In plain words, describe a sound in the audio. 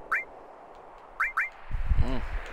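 A menu cursor beeps in short blips.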